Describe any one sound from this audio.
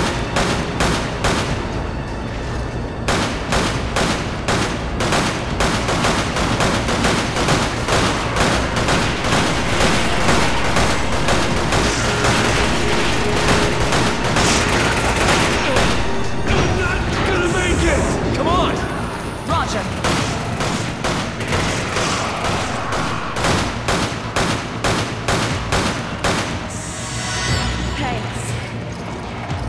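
A handgun fires shot after shot, echoing in a large hall.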